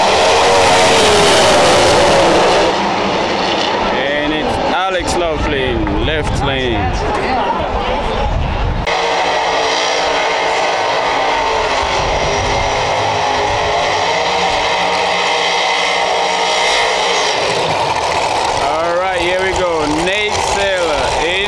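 Race car engines roar loudly as cars speed down a track.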